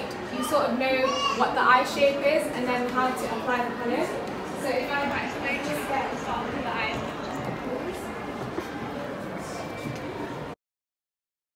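A crowd of people chatters around.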